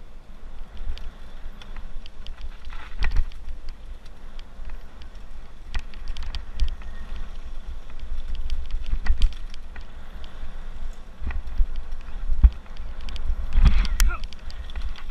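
A bike frame rattles and clanks over bumps.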